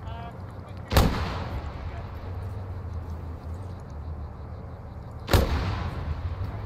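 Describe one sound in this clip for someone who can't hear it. A rocket launcher fires with a sharp, loud blast that echoes away.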